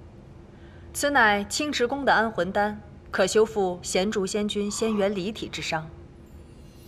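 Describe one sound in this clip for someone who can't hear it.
A woman speaks calmly, explaining.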